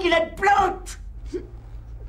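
An elderly man shouts angrily, close by.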